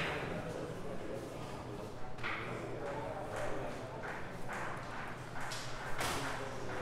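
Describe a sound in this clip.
Billiard balls click against each other now and then.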